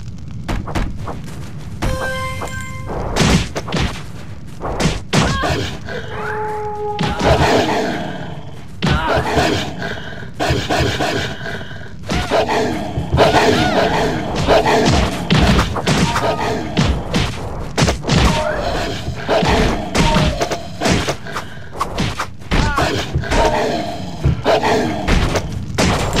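Wolves snarl and growl in a fight.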